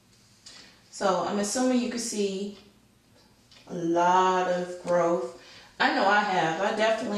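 A woman talks close by, calmly and with a lilting tone.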